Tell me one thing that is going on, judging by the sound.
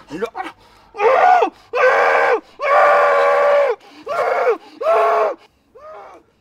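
A man shouts loudly in alarm.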